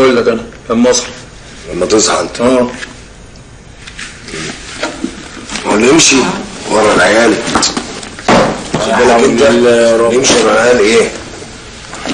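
Young men talk calmly with each other nearby.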